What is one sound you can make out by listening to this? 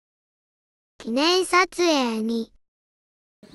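A woman speaks cheerfully close by.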